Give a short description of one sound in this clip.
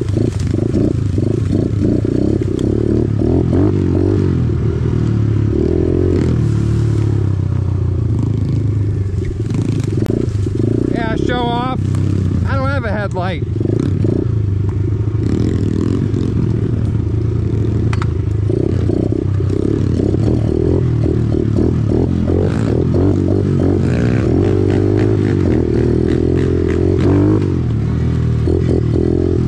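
A dirt bike engine rumbles steadily close by.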